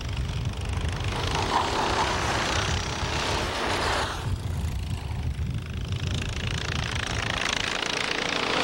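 Go-kart engines buzz and whine loudly as karts race past.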